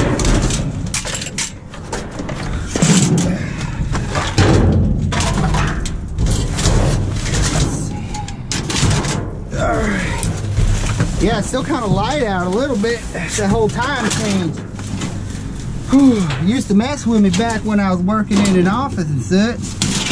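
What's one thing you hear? Metal bars clank against the wall of a metal bin.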